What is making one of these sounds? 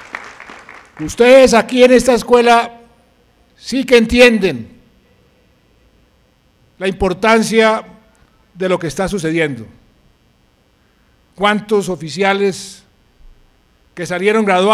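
A middle-aged man speaks forcefully into a microphone, pausing between phrases.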